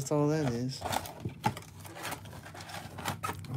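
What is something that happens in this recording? Cardboard scrapes and rustles as a box is pulled open.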